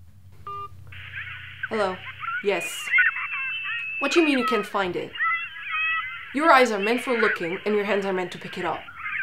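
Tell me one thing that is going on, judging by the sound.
A tinny voice talks through a phone.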